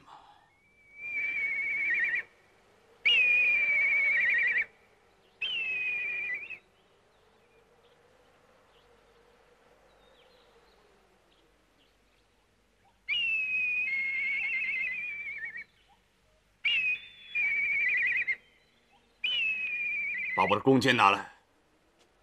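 Hawks cry out shrilly overhead, again and again.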